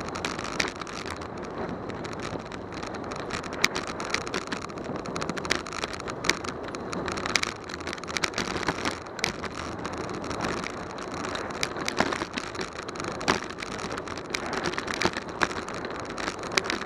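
Bicycle tyres hum and rattle on rough pavement.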